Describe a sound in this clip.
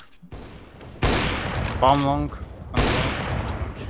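A sniper rifle fires loud shots.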